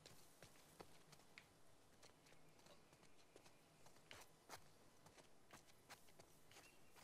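Footsteps run quickly on hard ground and grass.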